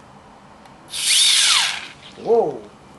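Gas hisses sharply from a keg's tap, then stops.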